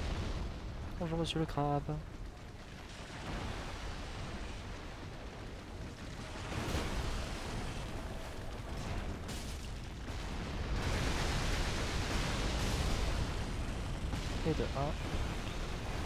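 A giant creature roars with a low, rumbling growl.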